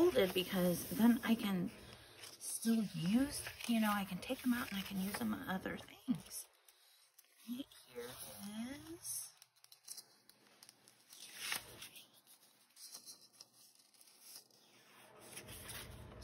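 Paper pages rustle and flap as they are turned by hand.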